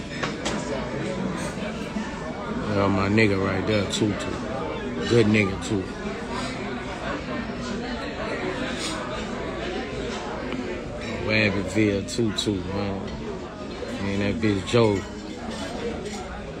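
A man talks casually close to a phone microphone.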